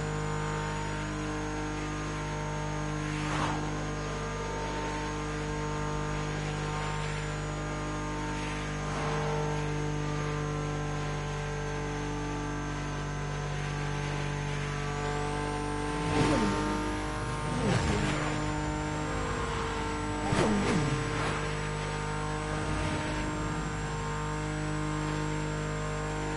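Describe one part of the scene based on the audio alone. Tyres hiss and rumble on the road.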